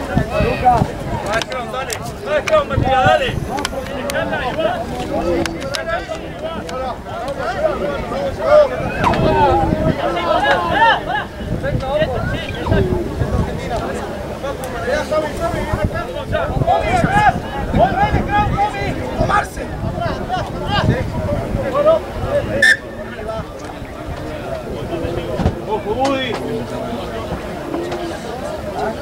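Young men shout and call to each other outdoors on an open field.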